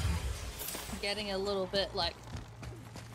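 A young woman speaks into a headset microphone.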